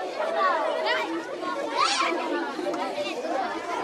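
A large crowd of children sings and shouts together outdoors.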